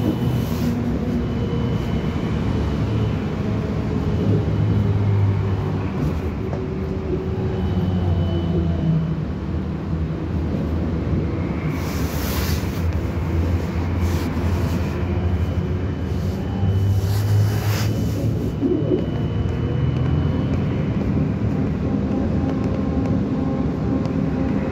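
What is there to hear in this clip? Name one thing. A vehicle engine hums steadily from inside while driving.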